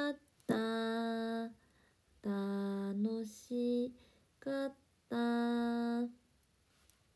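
A young woman sings long held notes close by.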